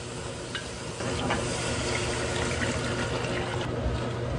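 Water pours into a sizzling pot.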